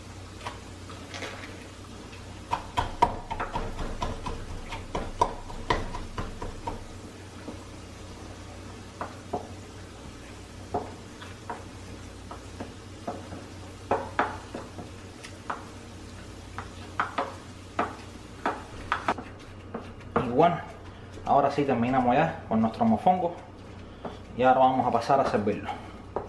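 A wooden pestle pounds and grinds in a wooden mortar with dull knocks.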